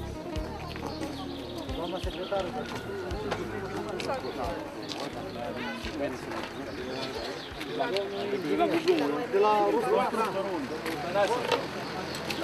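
Several men and women talk at once outdoors.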